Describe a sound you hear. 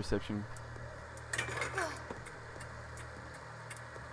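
Footsteps clank on a metal ladder.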